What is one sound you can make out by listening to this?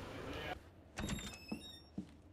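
A wooden door bumps open.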